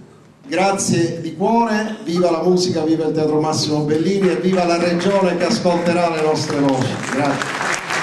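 A middle-aged man speaks with animation through a microphone and loudspeakers in a large hall.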